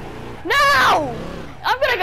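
A car engine revs as a car pulls away.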